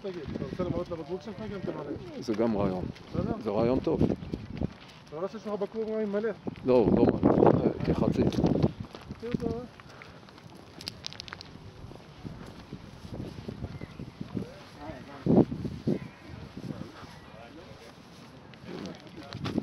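Footsteps crunch on gravel and pavement.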